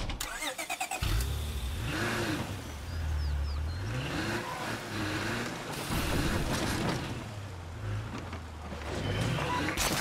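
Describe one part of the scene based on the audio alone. A car engine hums as the car drives, revving up and down.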